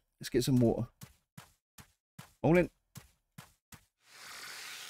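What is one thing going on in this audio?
Footsteps tap lightly at a steady walking pace.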